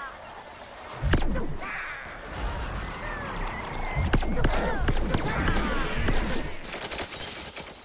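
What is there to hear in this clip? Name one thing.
Blasts of energy fire and burst with loud booms.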